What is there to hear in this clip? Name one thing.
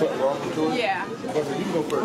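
A young woman speaks close by, answering.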